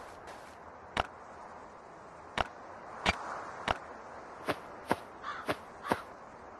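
Game interface clicks sound sharply as items are moved.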